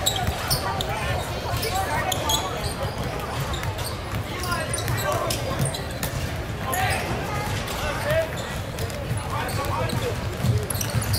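Players and spectators call out and chatter in a large echoing gym.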